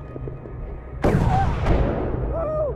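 A rifle shot cracks loudly and echoes.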